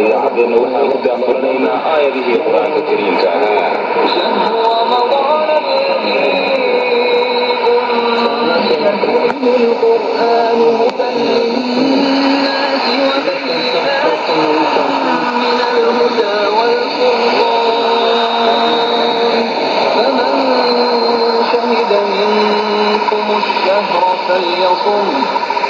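A steady high whistle of interference sounds from a shortwave radio.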